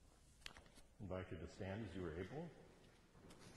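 An elderly man speaks calmly, slightly muffled.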